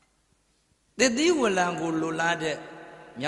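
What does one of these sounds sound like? An elderly man chants in a drawn-out, wavering voice through a microphone.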